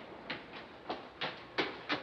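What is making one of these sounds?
A man runs with quick footsteps.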